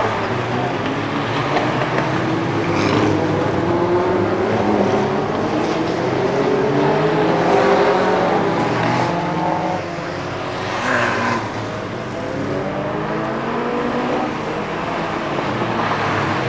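Racing car engines roar and whine around a track outdoors.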